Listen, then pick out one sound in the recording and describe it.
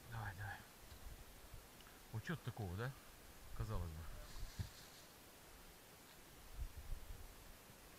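A hooked fish splashes at the surface of lake water.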